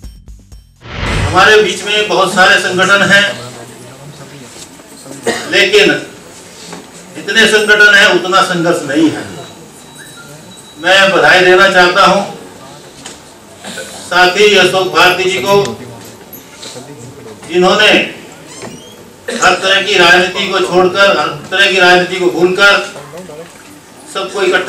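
An elderly man speaks steadily into a microphone, with pauses.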